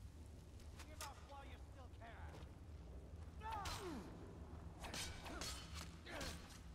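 Swords clash with short metallic rings.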